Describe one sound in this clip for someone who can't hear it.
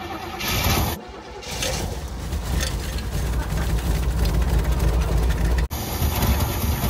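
A car engine idles roughly and loudly.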